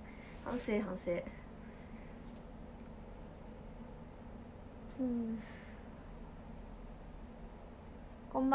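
A young woman speaks softly and close by, in short bursts.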